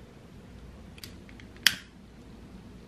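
A lighter clicks as it lights a candle.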